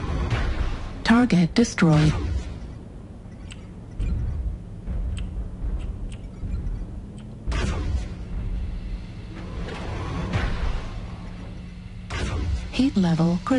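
Laser weapons fire in loud buzzing bursts.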